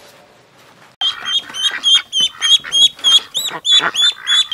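Ducklings peep rapidly and shrilly.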